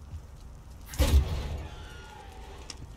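A heavy door is pushed open with a low thud.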